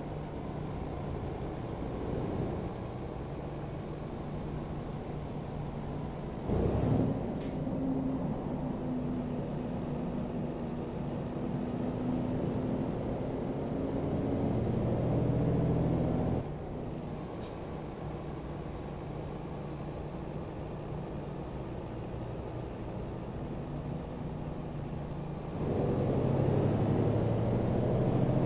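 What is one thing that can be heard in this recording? A truck's diesel engine drones steadily, rising and falling in pitch as it shifts gears.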